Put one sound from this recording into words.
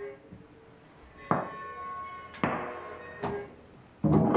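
Bodies thud and slide on a wooden floor.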